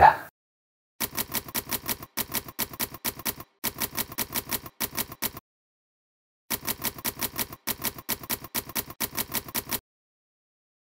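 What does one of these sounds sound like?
Typewriter keys clack in quick, even bursts.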